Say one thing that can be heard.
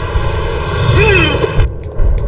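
A sword swishes through the air with a sharp slash.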